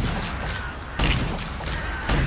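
A gun fires loudly in a short burst.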